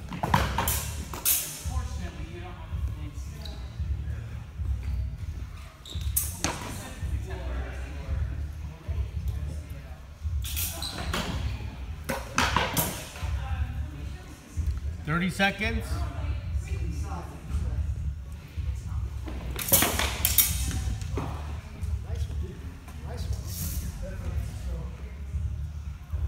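Fencing blades clash and click sharply.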